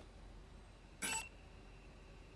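A louder electronic chime rings once.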